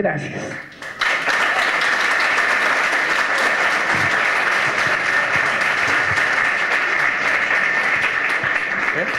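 An audience applauds loudly.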